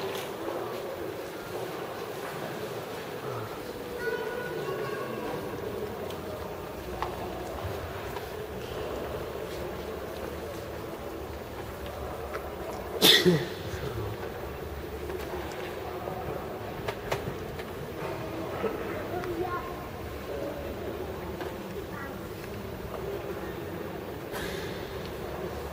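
A crowd of visitors murmurs softly in a large echoing hall.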